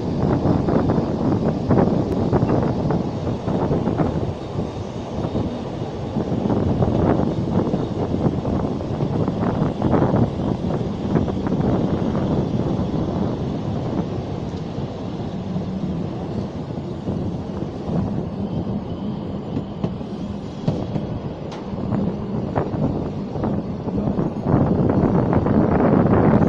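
Wind rushes past close by, outdoors.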